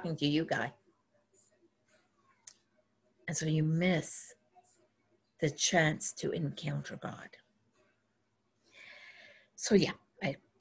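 An elderly woman speaks calmly through a microphone, as if in an online call, with pauses.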